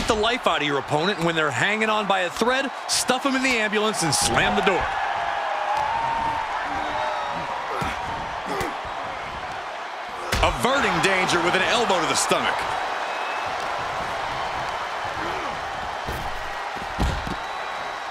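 Heavy bodies thud onto a wrestling ring.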